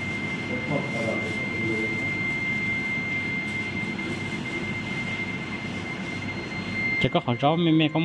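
A medical machine gives a steady high tone.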